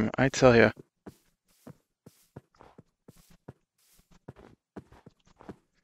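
Footsteps crunch on snow and grass.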